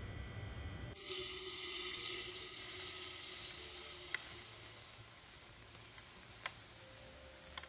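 Cold liquid hisses and splashes onto a hard floor.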